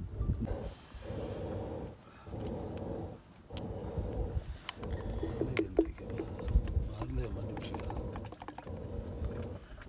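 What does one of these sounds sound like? A wooden plunger churns and sloshes liquid in a pot.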